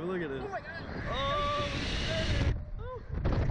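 A young woman screams and shrieks up close.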